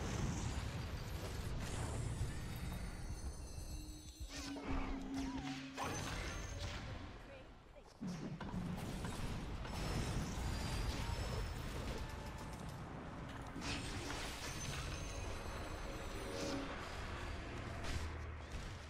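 Game spells and attacks crackle and bang in quick bursts.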